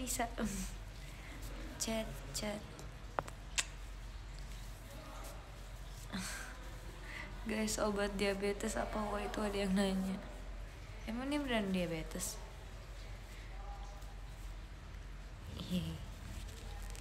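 A young woman speaks softly and tearfully close to a microphone.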